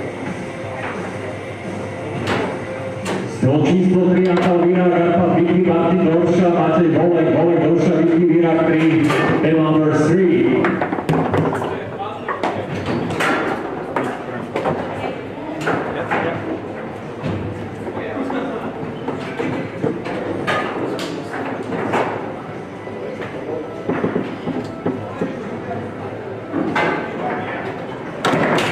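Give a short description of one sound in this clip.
A foosball ball cracks against the player figures and table walls.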